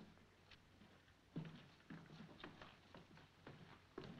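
Footsteps walk along a hallway.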